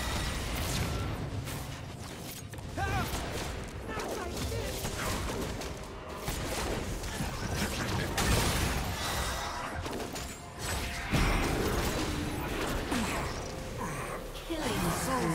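Game spell effects whoosh and blast during a fight.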